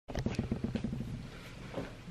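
A mattress creaks as someone sits down on it.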